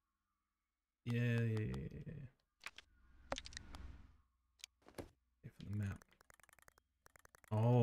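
A man speaks close to a microphone in short bursts.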